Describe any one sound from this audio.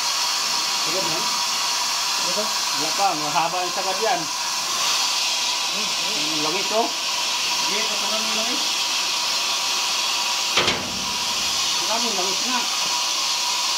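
A man talks nearby in short phrases.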